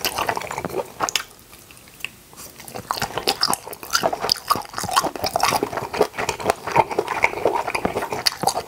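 A young man chews food loudly and wetly close to a microphone.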